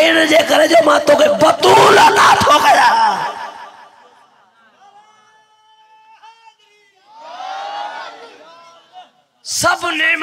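A man speaks with animation into a microphone, loudly amplified in an echoing space.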